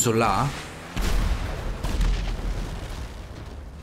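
A car crashes into a wall with a heavy thud.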